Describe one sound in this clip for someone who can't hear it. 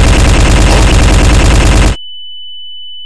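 A laser gun fires with a steady buzzing hum.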